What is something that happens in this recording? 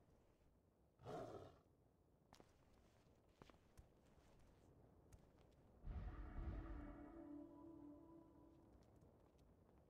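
A magic spell bursts with a whooshing, ringing blast.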